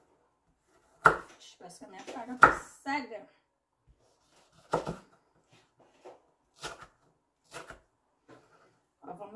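A knife knocks on a wooden cutting board.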